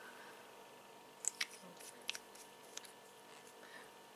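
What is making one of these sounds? A plastic cap clicks and taps on a lip gloss tube.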